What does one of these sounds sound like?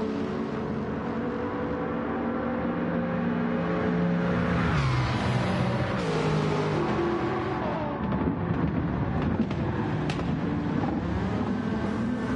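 Racing car engines roar loudly at high speed.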